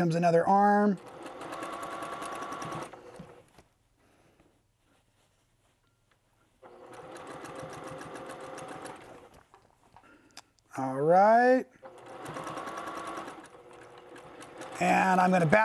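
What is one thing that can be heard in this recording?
A sewing machine whirs in quick bursts of stitching.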